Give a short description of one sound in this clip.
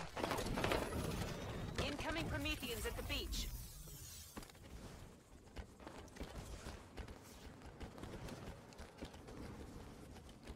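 Heavy footsteps thud on dirt as a figure runs.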